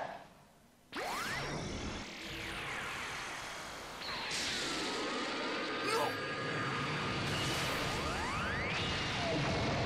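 An energy blast fires with a loud, rushing whoosh.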